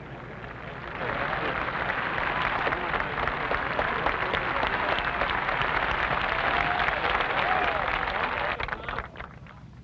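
A large crowd bursts into loud cheering and applause, then dies down.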